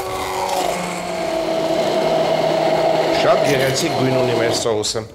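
A hand blender whirs steadily as it purées food.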